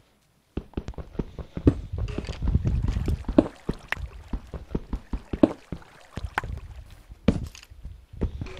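Footsteps clatter quickly on stone.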